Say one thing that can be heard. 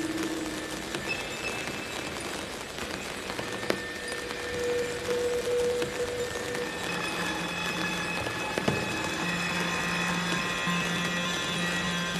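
Electronic music with drifting tones and soft clicks plays.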